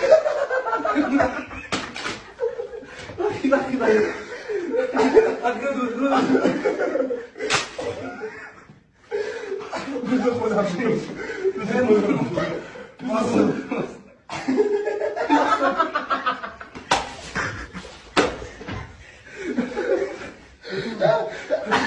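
Hands slap and thump against bodies during a scuffle.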